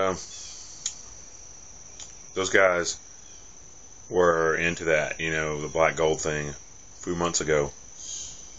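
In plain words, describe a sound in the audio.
A young man speaks calmly and close to the microphone, in short bursts with pauses.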